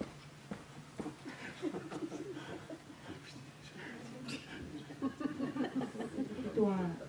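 A middle-aged woman speaks calmly through a microphone in a large echoing hall.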